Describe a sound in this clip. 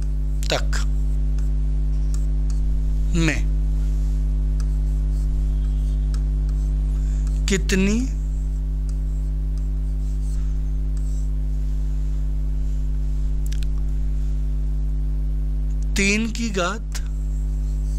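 A man speaks in short bursts through a headset microphone, close by.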